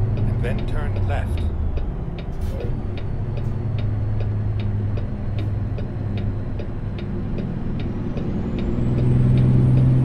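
A truck engine drones steadily and revs up near the end.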